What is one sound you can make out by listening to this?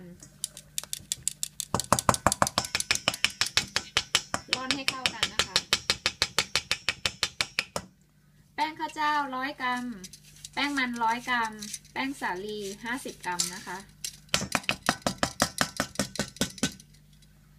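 A metal sieve taps rapidly against the rim of a metal bowl.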